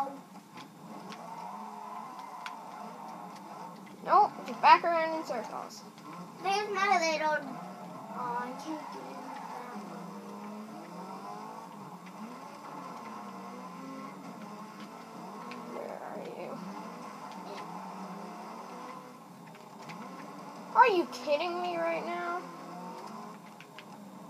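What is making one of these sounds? Racing car engines roar steadily from a television speaker.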